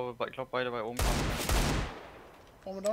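A pistol fires a loud shot that rings out and echoes away.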